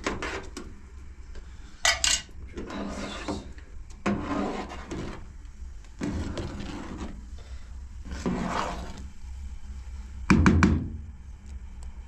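A thick liquid sloshes as it is stirred.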